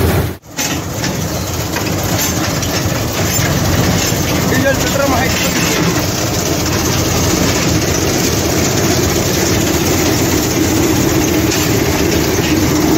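A tractor engine rumbles steadily up close.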